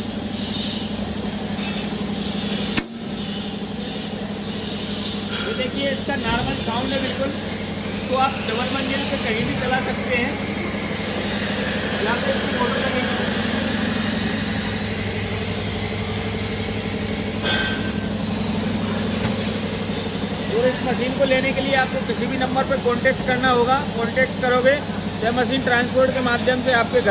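A grinding machine's motor hums steadily nearby.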